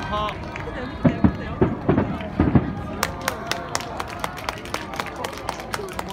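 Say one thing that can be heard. Firework sparks crackle and pop in quick bursts.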